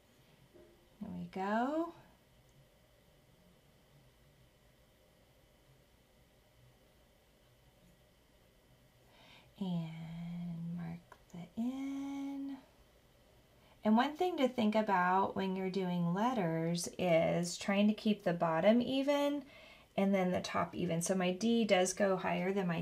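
A woman talks calmly and clearly into a nearby microphone.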